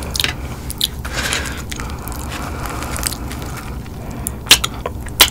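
Crispy fried chicken crackles as fingers tear it apart.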